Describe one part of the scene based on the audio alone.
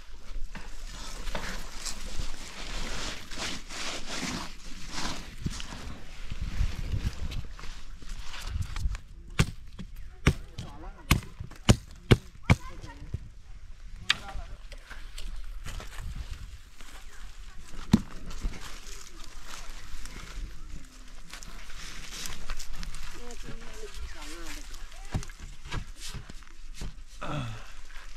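Dry leaves and twigs rustle and crackle.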